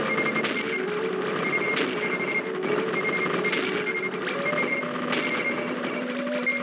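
Rapid electronic shots beep in quick, steady bursts.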